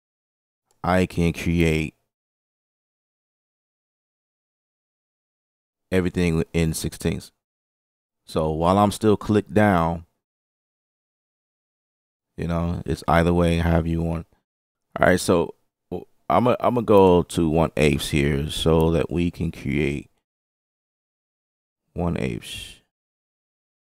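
A man talks calmly and steadily into a close microphone, in short bursts with pauses.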